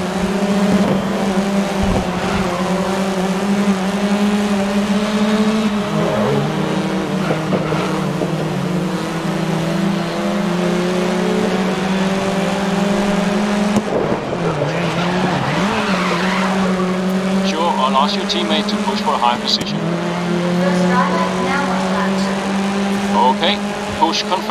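A racing car engine roars steadily, rising and falling in pitch as it shifts gears.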